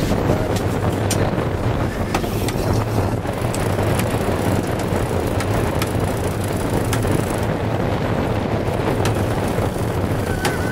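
Strong wind blows steadily across an open deck outdoors.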